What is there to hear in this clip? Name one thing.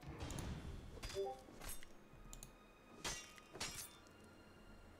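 A blade swishes sharply through the air, again and again.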